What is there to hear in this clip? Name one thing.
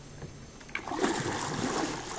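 A paddle splashes and swishes through water.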